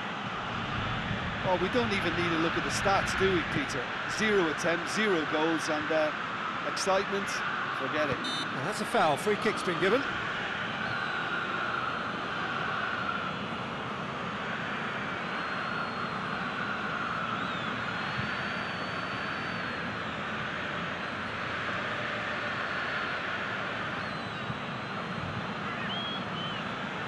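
A stadium crowd murmurs and roars steadily in the distance.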